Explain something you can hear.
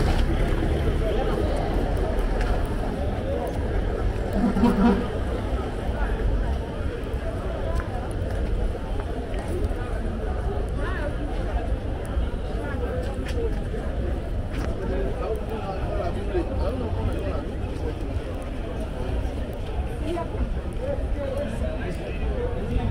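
A crowd of people chatters outdoors on a busy street.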